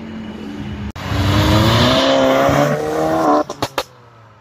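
A car engine revs loudly as the car speeds past close by.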